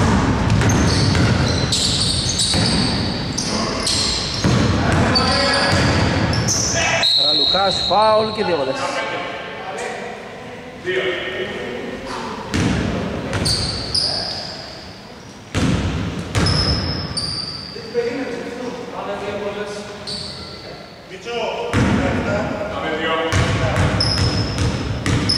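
Men shout to each other in a large echoing gym.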